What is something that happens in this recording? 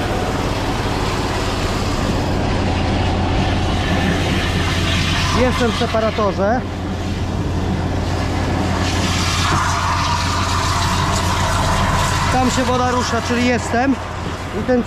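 A hose scrapes and drags over paving stones.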